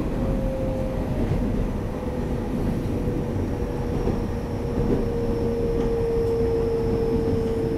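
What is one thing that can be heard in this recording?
An electric multiple unit train rumbles along the track at speed, heard from inside the carriage.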